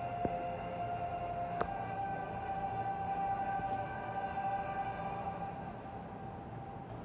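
Music plays through loudspeakers in a room and slowly fades out.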